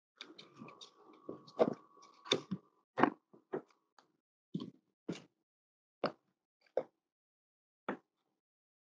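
Plastic cups and glass sheets clink and tap together.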